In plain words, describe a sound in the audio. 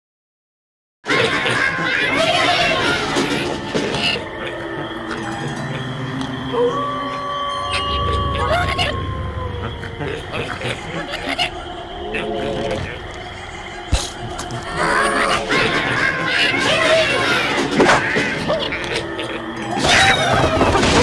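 Cartoonish video game music and sound effects play.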